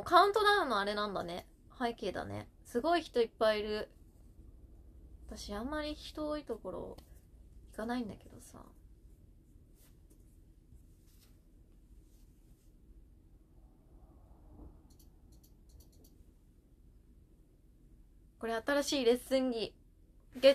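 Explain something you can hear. A young woman speaks with animation, close to the microphone, with pauses.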